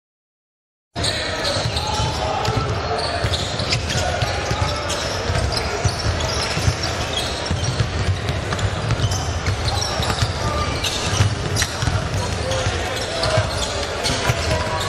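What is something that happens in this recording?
Sneakers squeak on a hardwood court.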